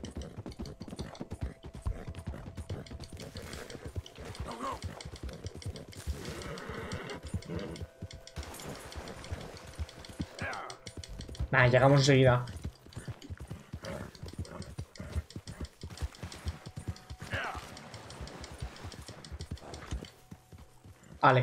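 A horse gallops with rapid hoofbeats.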